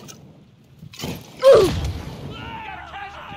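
A bottle shatters and flames burst with a whoosh.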